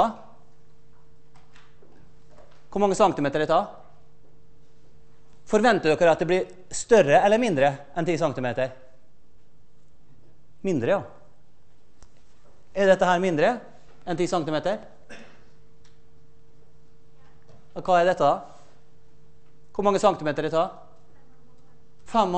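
A man lectures through a microphone, speaking in short bursts with pauses.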